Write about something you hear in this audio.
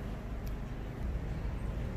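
Small scissors snip close by.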